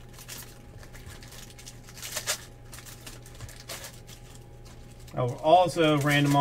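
Trading cards and plastic wrappers rustle and crinkle up close.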